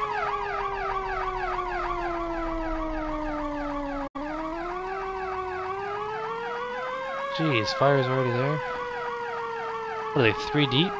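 A truck engine hums steadily and its pitch slowly rises and falls.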